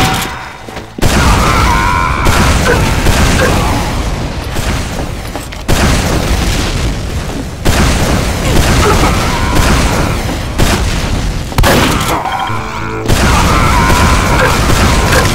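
Rockets fire and explode with loud booms.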